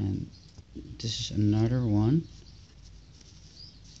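Paper banknotes rustle as a hand lays one down.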